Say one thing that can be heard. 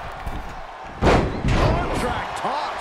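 A body slams hard onto a wrestling mat with a loud thud.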